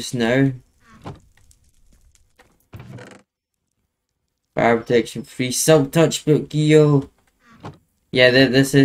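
A wooden chest thumps shut.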